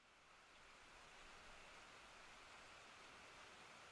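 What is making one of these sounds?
Rain falls steadily and softly.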